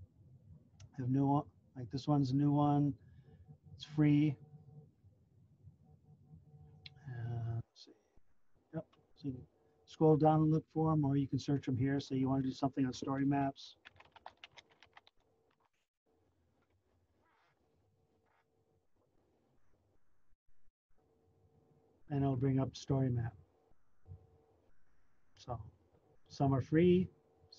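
A man talks calmly through an online call microphone.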